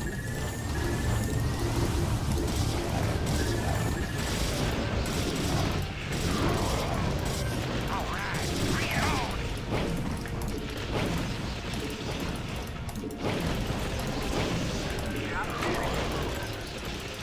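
Game battle sounds of gunfire and explosions play throughout.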